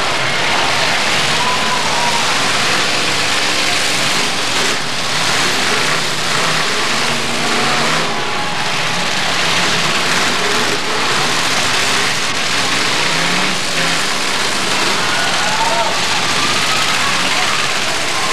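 Engines roar loudly as cars drive on a dirt track.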